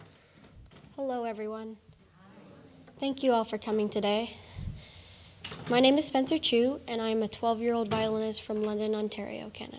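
A young girl speaks calmly through a microphone.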